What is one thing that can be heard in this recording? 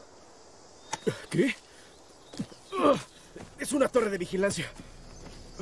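A man calls out, close by.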